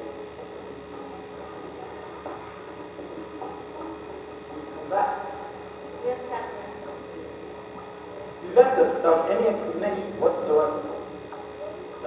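A woman speaks on a stage, heard from the audience in a large hall.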